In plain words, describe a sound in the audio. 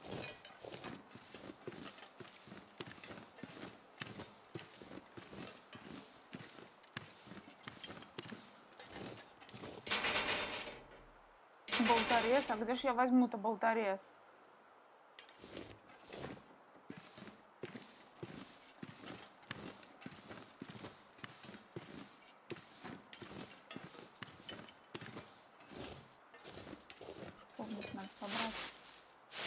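Footsteps thud on wooden steps and crunch through snow at a steady walking pace.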